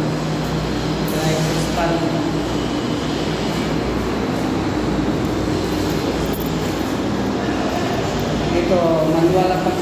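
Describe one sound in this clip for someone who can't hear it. A machine drum hums and rumbles steadily.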